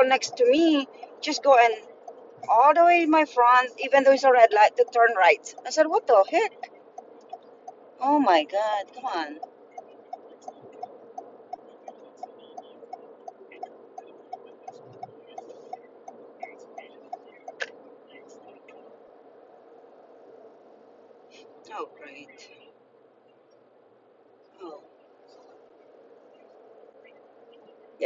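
A car engine hums steadily as the car drives along a road.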